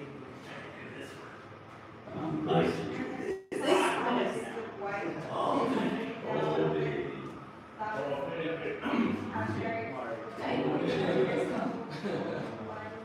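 A band plays amplified rock music in a live room.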